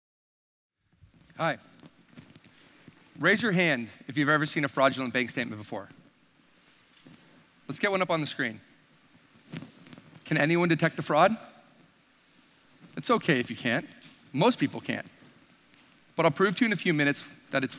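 A man speaks with animation through a microphone.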